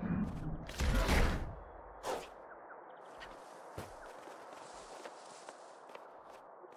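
Light footsteps patter on grass.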